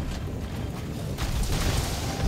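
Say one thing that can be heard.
An energy blast crackles and roars.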